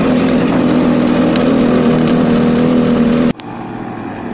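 Motorcycle engines hum steadily as the bikes ride uphill.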